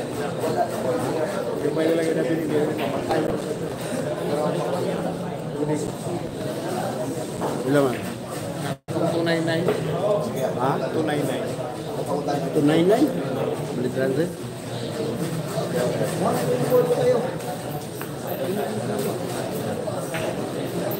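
A crowd of young men talks and murmurs nearby.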